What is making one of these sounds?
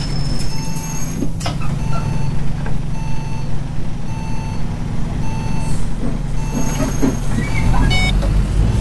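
A bus engine idles with a low, steady hum.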